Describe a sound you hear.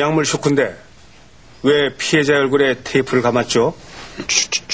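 An elderly man speaks calmly and firmly.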